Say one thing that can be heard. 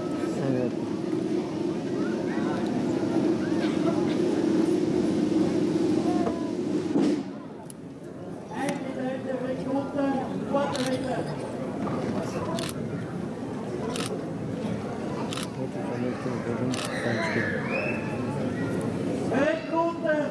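A crowd of onlookers murmurs and chatters outdoors.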